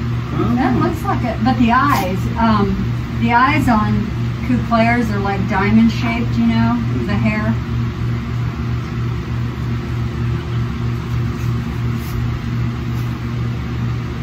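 A towel rubs over a newborn goat kid's wet coat.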